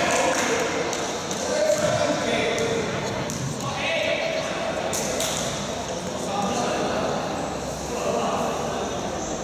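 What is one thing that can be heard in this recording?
Young men call out to each other in a large echoing hall.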